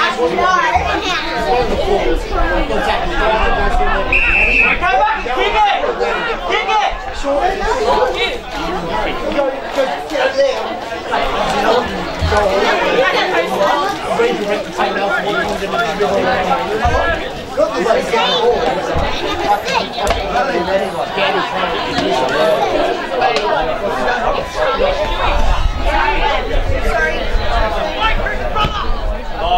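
Men shout and call to each other across an open sports field.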